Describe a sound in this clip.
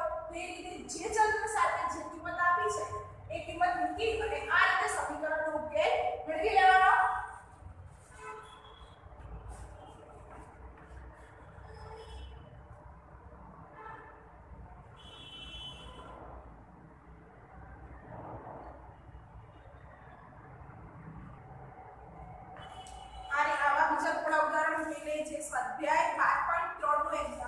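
A teenage girl speaks clearly and calmly, close by.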